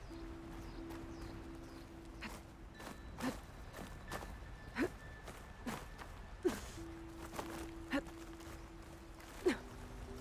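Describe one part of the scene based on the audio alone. Hands grab and scrape against a rock face while climbing.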